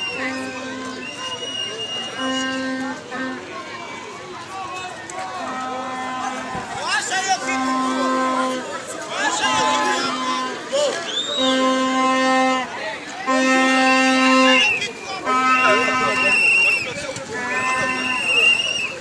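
A crowd of young men sings and chants loudly outdoors.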